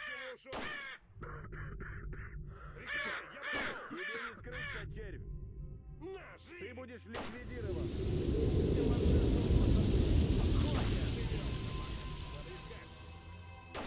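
Crows caw overhead in the distance.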